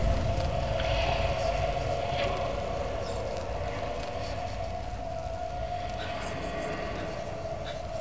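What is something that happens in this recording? A young man sobs and cries out in distress close by.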